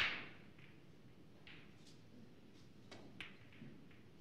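Snooker balls click sharply against each other.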